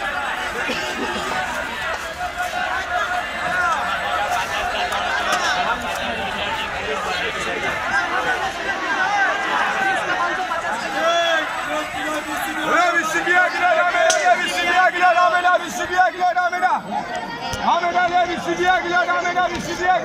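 Many men and women chatter and call out all around, outdoors.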